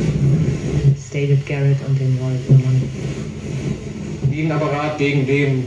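A radio plays a tune through its small loudspeaker.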